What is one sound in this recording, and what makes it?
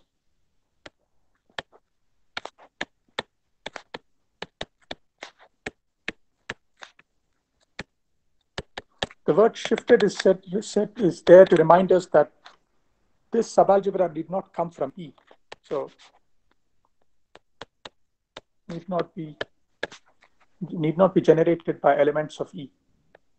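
A stylus taps and scratches on a tablet.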